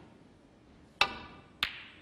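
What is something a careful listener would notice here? A cue strikes a ball with a sharp tap.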